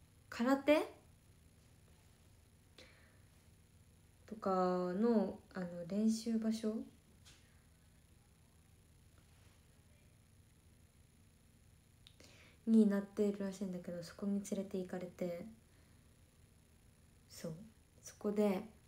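A young woman speaks softly and close by, in short bursts with pauses.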